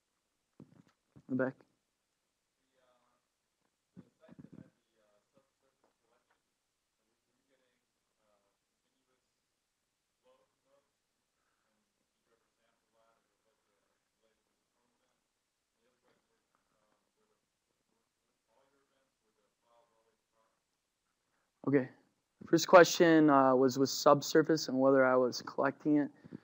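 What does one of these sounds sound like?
A young man speaks into a microphone, pausing at length between remarks.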